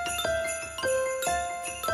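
Handbells ring in a steady rhythm.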